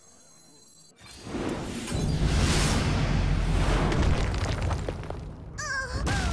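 Game effects crackle and boom loudly.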